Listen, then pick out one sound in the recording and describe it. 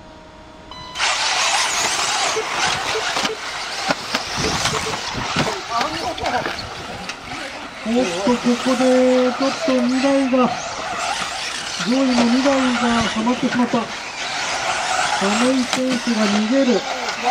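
Small remote-controlled cars buzz and whine as they race over dirt, outdoors.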